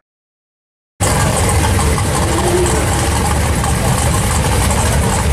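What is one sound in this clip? A red car's engine idles with a heavy, lumpy rumble.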